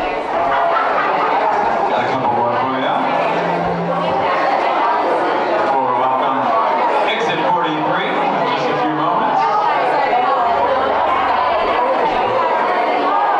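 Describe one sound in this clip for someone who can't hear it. A man strums an electric guitar.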